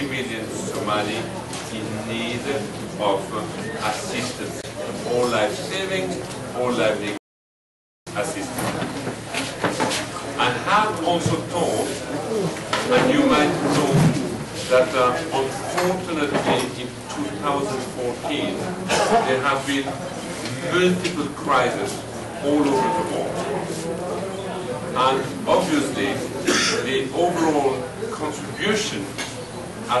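A middle-aged man speaks with animation into a nearby microphone.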